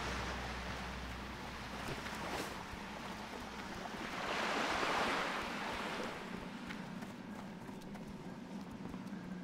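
Footsteps run across soft sand.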